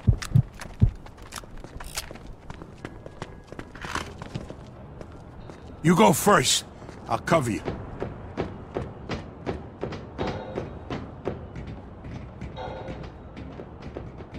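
Footsteps walk steadily on a hard floor and metal stairs.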